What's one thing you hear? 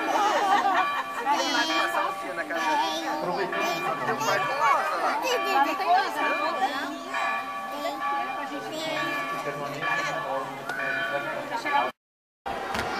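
A crowd of people chatters nearby.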